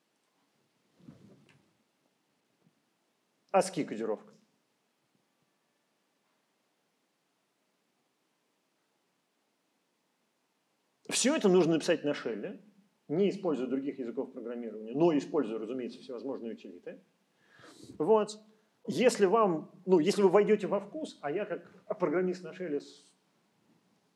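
A middle-aged man talks calmly, close by, with pauses.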